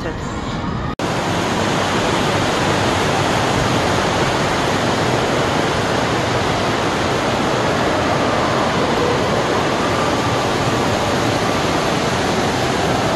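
A fountain splashes and rushes steadily.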